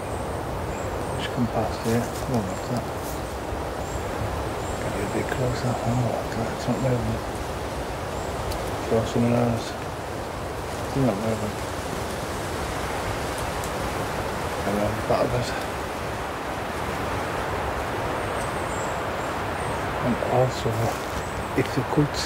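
Leaves rustle softly in a light breeze outdoors.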